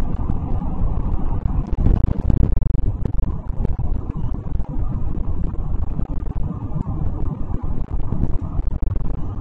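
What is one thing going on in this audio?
Tyres roll and hum on the road.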